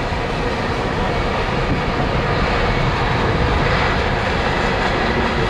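A freight train rumbles and clatters along the tracks at a distance.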